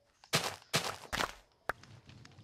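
Dirt crunches in quick bursts as blocks are dug.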